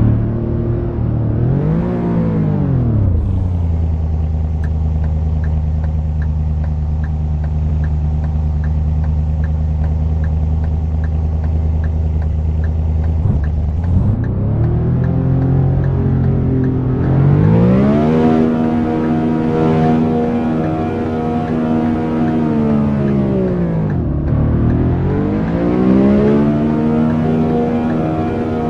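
A car engine revs up and down, then idles steadily before accelerating through the gears.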